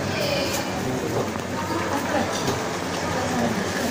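A crowd of adults chatters in the background.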